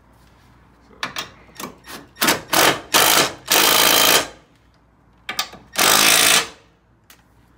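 A cordless impact driver hammers on a bolt in short bursts.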